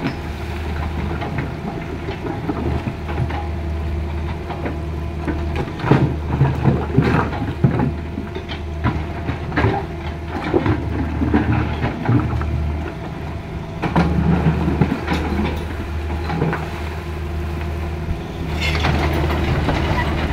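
Shallow river water rushes over stones.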